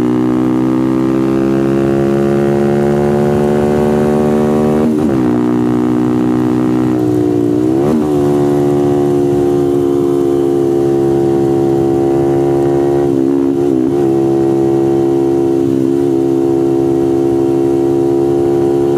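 Wind rushes past at speed.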